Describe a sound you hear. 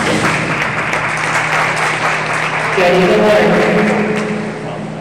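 A swimmer splashes through the water in a large echoing hall.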